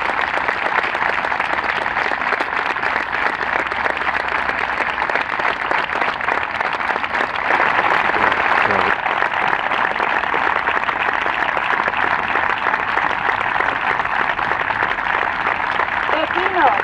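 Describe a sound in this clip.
A large crowd outdoors claps and cheers steadily.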